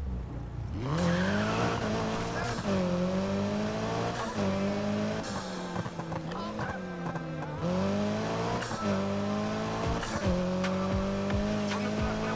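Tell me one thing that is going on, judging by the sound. A car engine revs hard, rising in pitch and dropping with each gear change.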